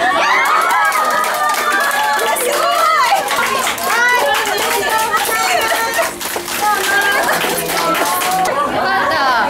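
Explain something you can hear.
A crowd of young women clap their hands.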